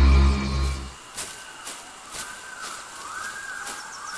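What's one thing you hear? A large cartoon creature's heavy footsteps thud in a steady rhythm.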